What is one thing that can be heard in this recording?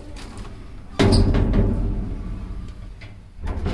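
An elevator door slides shut with a thud.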